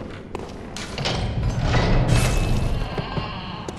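Heavy wooden doors creak and swing open.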